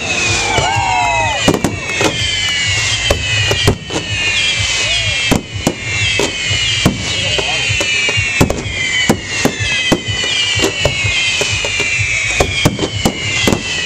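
Firework rockets launch upward with hissing trails.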